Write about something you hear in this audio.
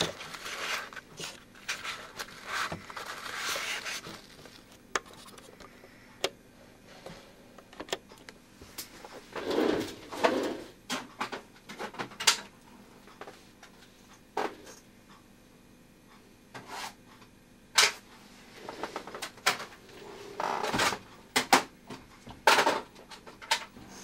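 An old television hums faintly and steadily.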